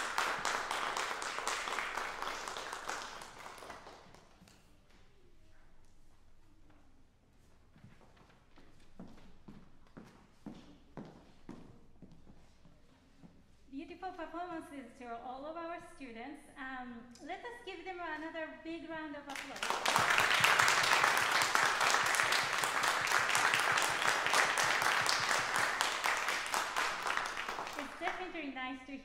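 An audience applauds in an echoing hall.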